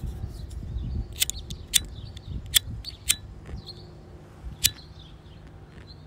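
Metal neck chains jingle and clink.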